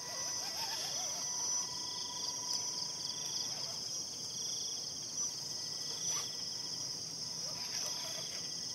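Small tyres crunch and scrape on loose dirt.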